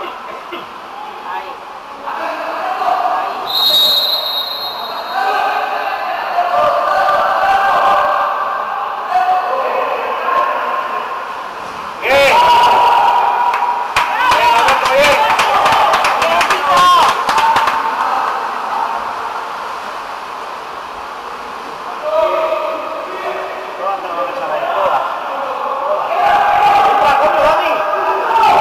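Water splashes and churns as swimmers thrash in a pool.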